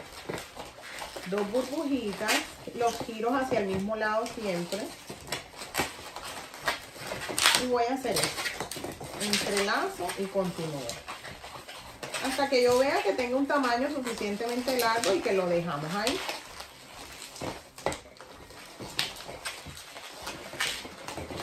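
Latex balloons squeak and rub as they are twisted.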